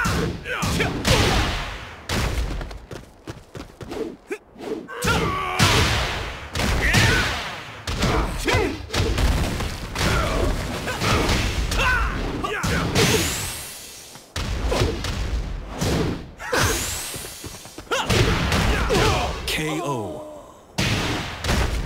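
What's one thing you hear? Punches and kicks land with loud thuds and smacks.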